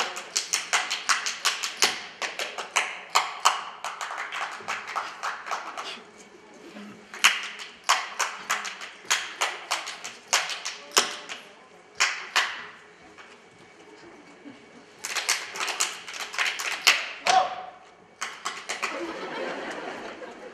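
A band plays folk music behind the dancers.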